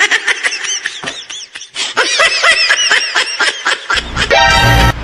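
A young woman laughs, giggling close by.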